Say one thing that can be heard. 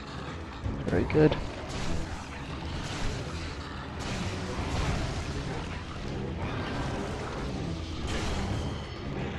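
A blade slashes and strikes a hard hide.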